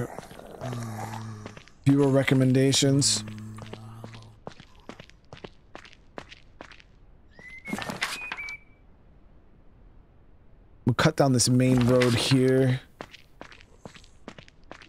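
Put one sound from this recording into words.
Footsteps tap on pavement at a steady pace.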